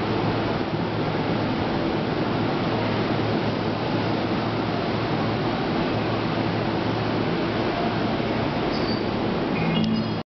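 A train rumbles and rattles steadily along a platform.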